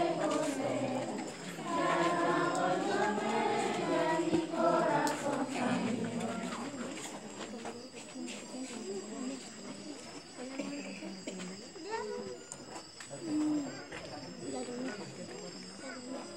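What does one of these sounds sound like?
A crowd of people talks and shouts loudly nearby.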